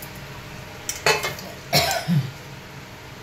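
A metal lid clatters against a pan.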